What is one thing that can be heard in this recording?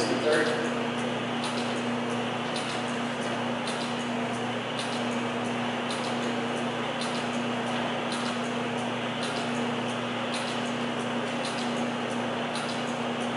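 A spinning machine ticks in a steady rhythm.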